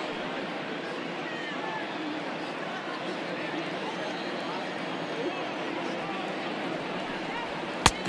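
A large crowd murmurs and chatters steadily in an open stadium.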